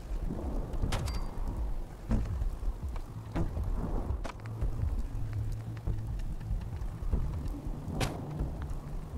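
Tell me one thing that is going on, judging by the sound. Short electronic clicks sound as menu items are picked.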